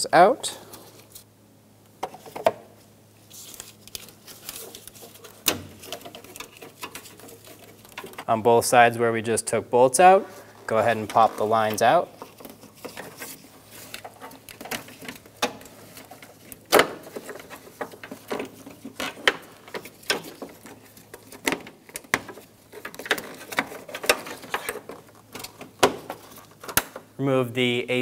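Plastic parts click and knock as hands work on a car's radiator.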